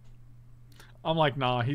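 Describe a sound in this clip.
A man speaks loudly and with animation into a microphone.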